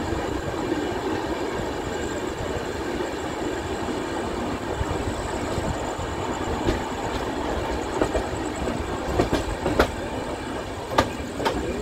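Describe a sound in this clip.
Wind rushes past an open train door.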